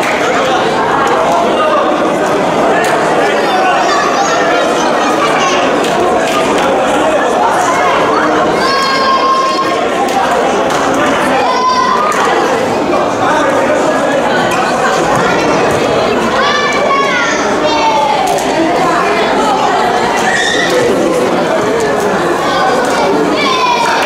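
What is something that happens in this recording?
A crowd of young people cheers and shouts in a large echoing hall.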